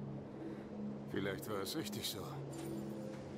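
A middle-aged man speaks quietly and wearily, close by.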